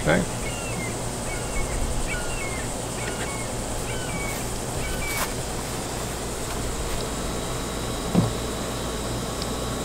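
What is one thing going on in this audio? Small metal parts click faintly as wires are handled.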